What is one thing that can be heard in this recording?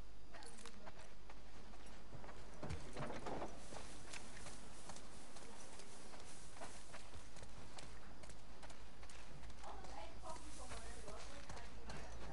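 Footsteps crunch through grass and gravel.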